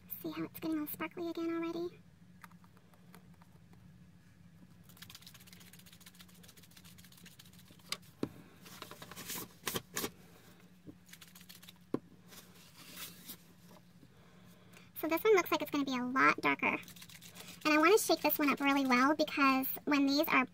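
A small plastic bottle clicks as its cap is twisted.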